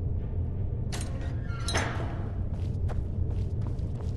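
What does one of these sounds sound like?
A heavy metal cage door swings shut with a clank.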